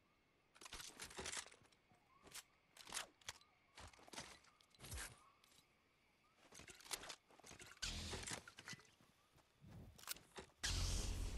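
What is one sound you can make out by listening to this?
A weapon clicks and rattles as it is picked up.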